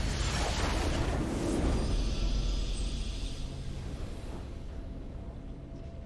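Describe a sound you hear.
A triumphant game fanfare rings out.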